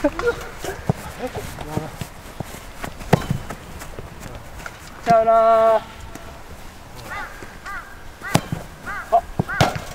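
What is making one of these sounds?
Young men call out and shout outdoors.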